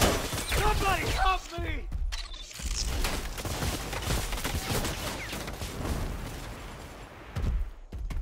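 Video game sound effects thump and whoosh.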